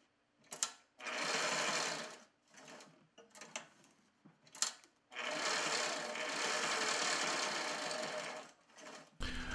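A sewing machine whirs as it stitches in short bursts.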